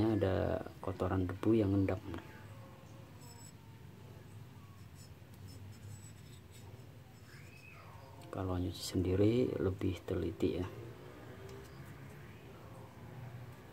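A small metal tool taps and scrapes against metal.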